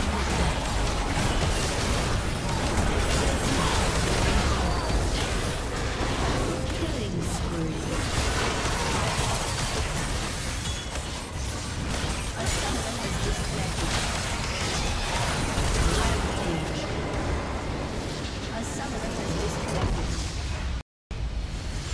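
Video game spell blasts and clashing weapons sound in a busy battle.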